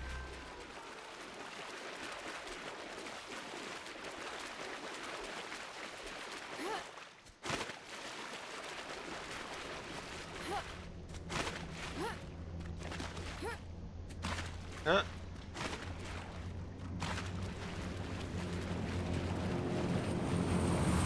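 Water splashes steadily as someone wades through it.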